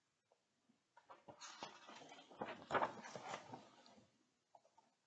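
Pages of a book rustle as they turn.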